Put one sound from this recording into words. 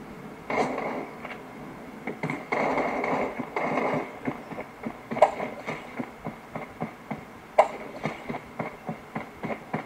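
Gunshots from a mobile game pop through a small phone speaker.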